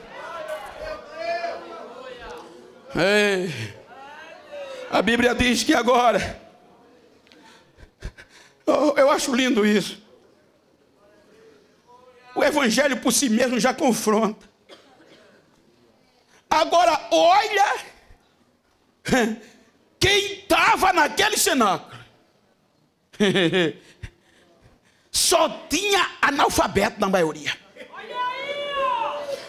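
An elderly man preaches forcefully into a microphone in bursts, heard through loudspeakers in an echoing hall.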